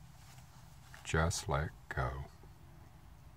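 A middle-aged man speaks briefly and casually, close to the microphone.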